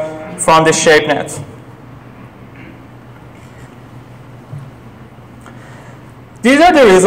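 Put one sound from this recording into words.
A young man speaks calmly through a microphone, pausing between phrases.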